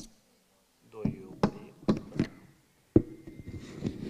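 A microphone thumps and knocks as it is handled.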